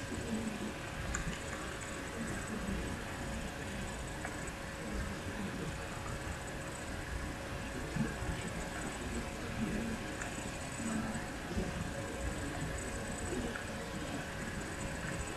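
A pencil scrapes as it turns in a small hand sharpener.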